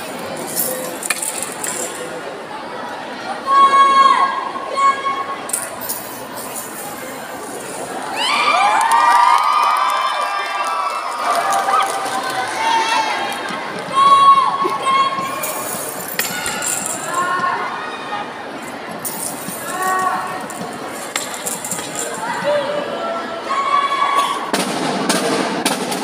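A marching band plays in a large echoing hall.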